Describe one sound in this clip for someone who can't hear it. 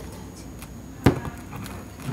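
A glass bottle knocks against a wooden table.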